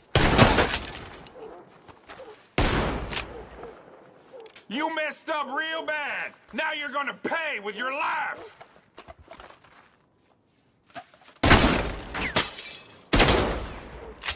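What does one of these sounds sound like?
Gunshots bang loudly and echo.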